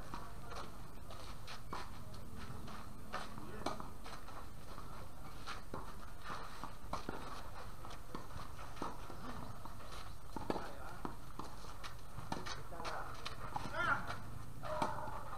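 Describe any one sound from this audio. Tennis rackets strike a ball back and forth outdoors.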